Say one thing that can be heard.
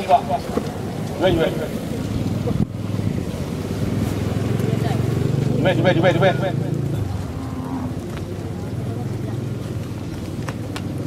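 A crowd of men and women talks and calls out outdoors.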